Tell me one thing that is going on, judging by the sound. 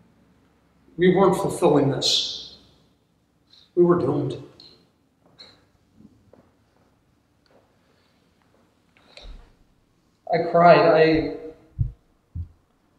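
An elderly man speaks slowly and calmly in a hall with a slight echo.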